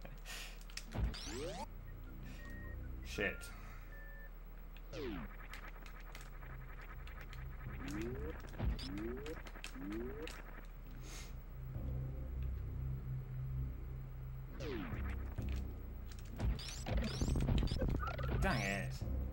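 Electronic video game sound effects zap and chirp in rising and falling sweeps.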